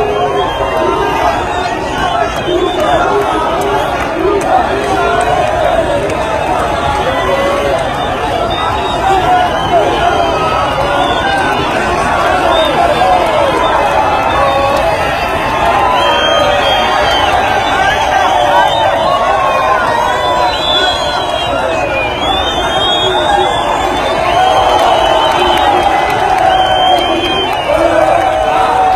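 A large crowd of men and women cheers and chants loudly outdoors.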